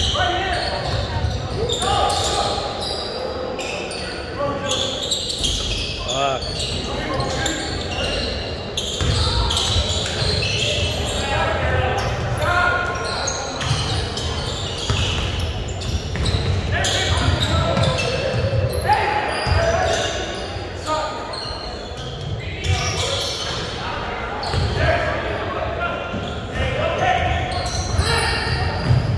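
A crowd of spectators cheers and calls out.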